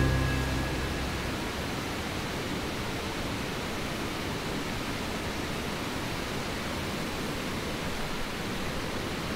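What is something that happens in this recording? Waterfalls rush and splash steadily over rocks.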